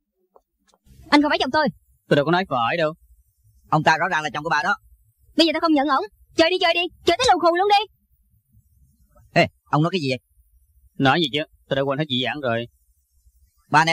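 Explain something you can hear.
A woman speaks sharply up close.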